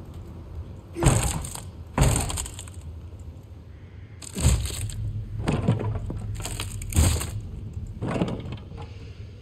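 Wooden crates smash and splinter under heavy blows.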